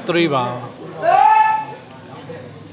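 A man shouts loudly.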